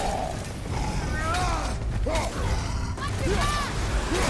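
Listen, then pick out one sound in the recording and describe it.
An axe whooshes through the air and thuds against a creature.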